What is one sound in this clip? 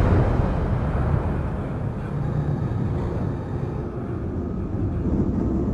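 Fire roars and crackles aboard a ship.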